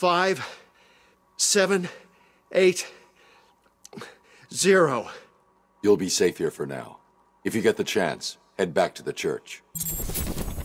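A man speaks anxiously up close.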